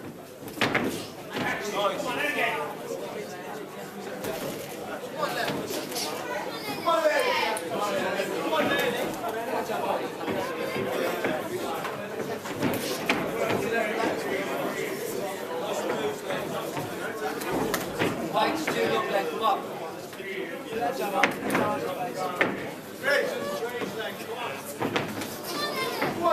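A crowd of men and women shouts and cheers throughout a large echoing hall.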